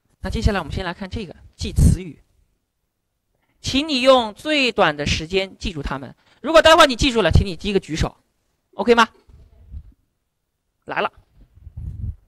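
A man speaks with animation in a room with some echo.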